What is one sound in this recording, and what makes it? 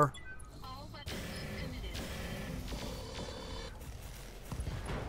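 Laser weapons fire with loud buzzing zaps.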